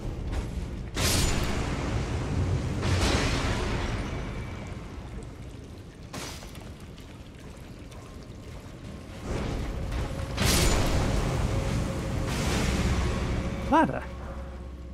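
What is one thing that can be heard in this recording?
Fire spells burst with a loud roaring whoosh.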